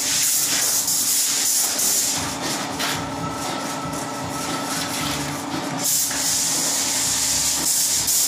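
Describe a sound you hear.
A man scrapes plaster from a ceiling with a hand tool.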